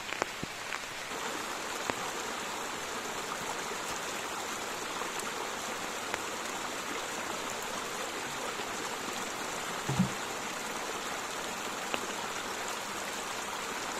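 Water trickles steadily from a pipe.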